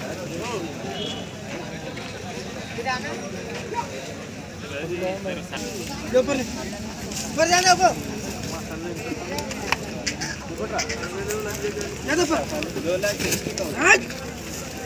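Men talk nearby, outdoors among a crowd.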